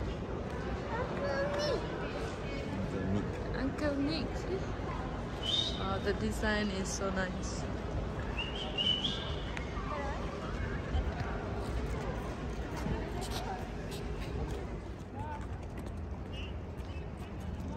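A crowd of people chatter in the open air.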